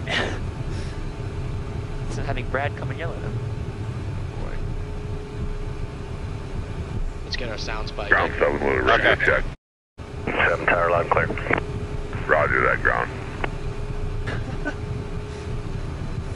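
An aircraft engine hums steadily inside a small cockpit.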